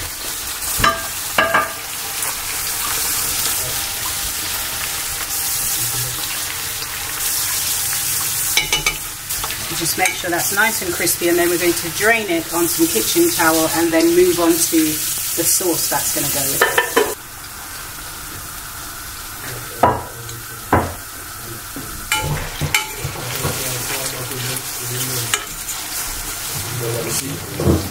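A metal fork scrapes and taps against a pan.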